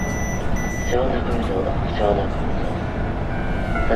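A level crossing bell rings rapidly.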